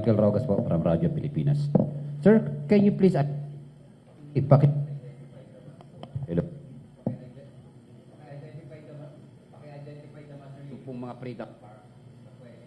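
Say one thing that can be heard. A man speaks calmly into a microphone.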